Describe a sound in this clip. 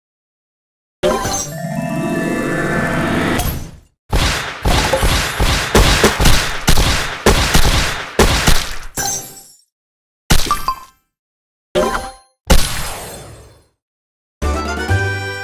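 A rush of bright explosion and sparkle effects bursts out in quick succession.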